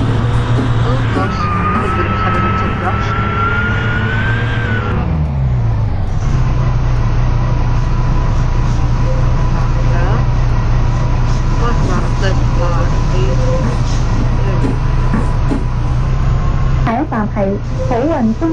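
A bus engine hums steadily as it drives, dropping in pitch when it changes gear.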